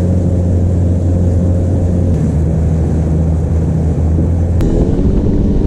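A boat motor hums steadily.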